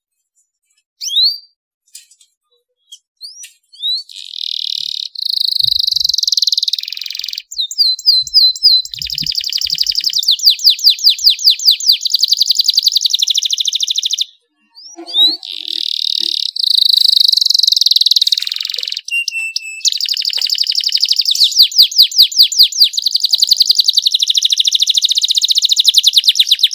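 A canary sings loudly and close by in long, fast trills and warbles.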